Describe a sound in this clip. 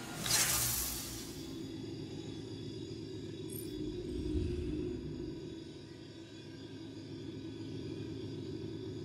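A device hums low and steadily.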